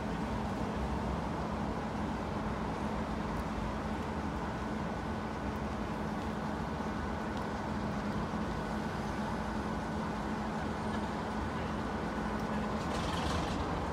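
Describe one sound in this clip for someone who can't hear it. A diesel locomotive engine idles with a steady low rumble.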